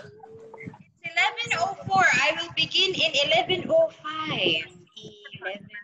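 Children's voices chatter excitedly through an online call.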